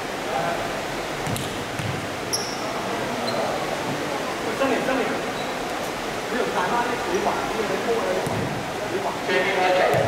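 Men call out and shout to each other across a large echoing hall.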